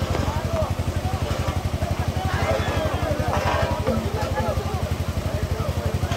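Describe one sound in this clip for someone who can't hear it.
A crowd of men shouts and chatters nearby.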